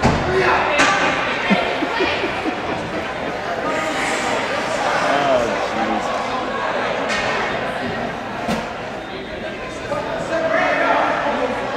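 A crowd chatters and calls out in a large echoing arena.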